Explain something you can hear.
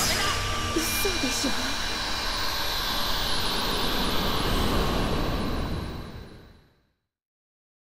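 A loud burst of energy roars and slowly fades out.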